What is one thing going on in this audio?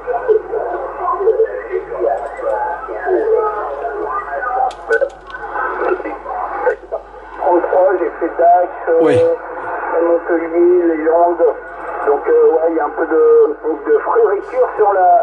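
A man's voice talks over a radio loudspeaker, thin and crackly.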